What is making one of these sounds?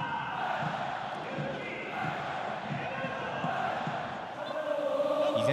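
A large crowd chants and sings in an open stadium.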